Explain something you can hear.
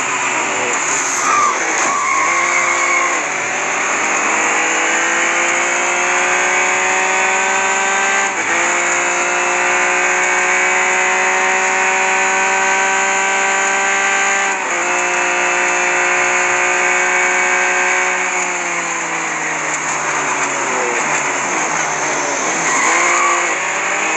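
A racing car engine drops in pitch as it slows for corners.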